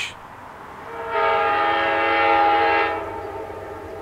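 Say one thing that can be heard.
A train horn blows a long, steady blast.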